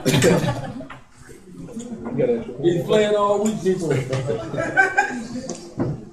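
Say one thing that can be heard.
Men laugh nearby.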